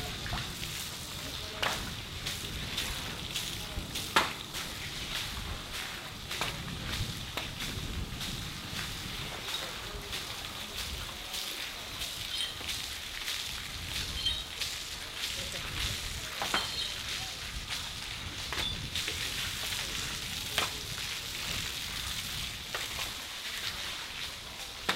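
A broom scrubs and scrapes across a wet floor.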